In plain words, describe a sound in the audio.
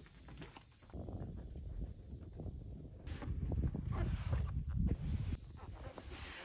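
A plastic kayak scrapes and bumps as it slides along a car roof rack.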